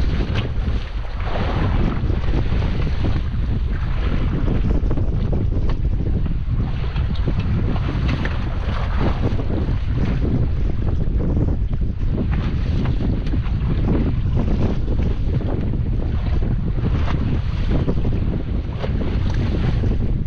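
Waves splash against the side of a small boat.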